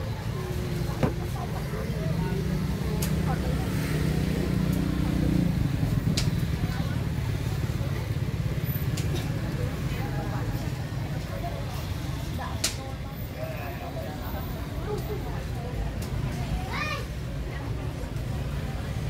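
A crowd of men and women chatters at a distance.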